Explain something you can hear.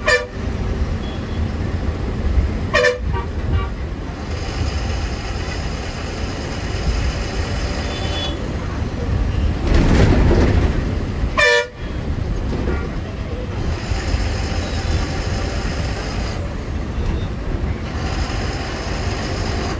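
Motorbikes and traffic pass by outside.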